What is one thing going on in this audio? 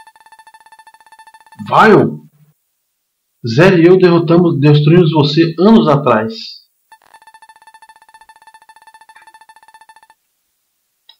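Rapid electronic beeps tick as game text types out.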